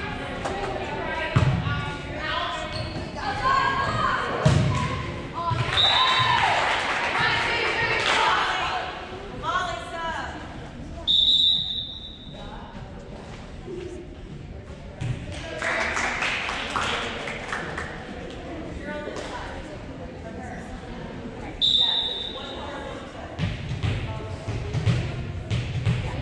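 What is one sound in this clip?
Players call out and shout in a large echoing hall.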